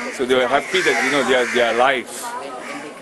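A middle-aged man speaks close by, calmly explaining.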